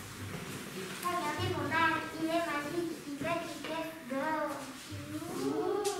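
Children talk to each other in high voices.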